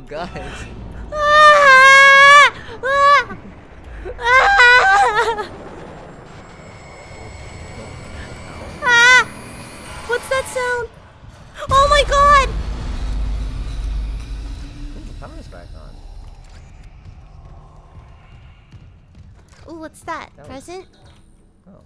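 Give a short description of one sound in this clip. A young woman shrieks and talks excitedly close to a microphone.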